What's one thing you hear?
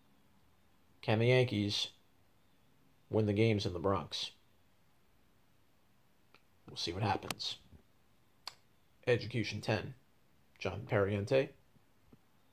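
A young man speaks calmly and close up, in short bursts with pauses.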